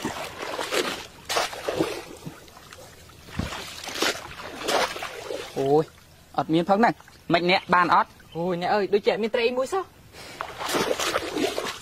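Water splashes as fish traps are pushed into a shallow pond.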